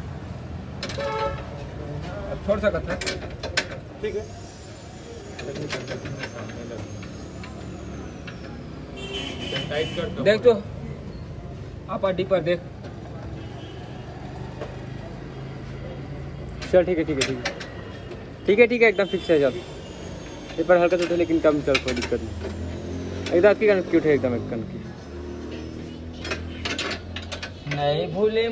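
Young men talk to each other nearby.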